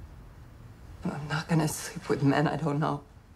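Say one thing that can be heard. A young woman answers in a tearful, trembling voice.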